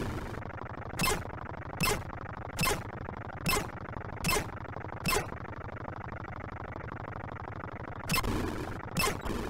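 Sharp electronic zaps fire at a regular beat.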